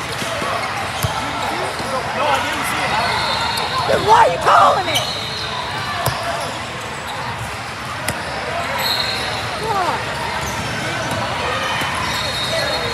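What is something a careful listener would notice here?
Young girls shout and call out in a large echoing hall.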